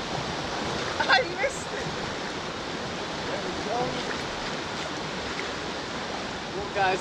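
Water splashes as a fish is netted.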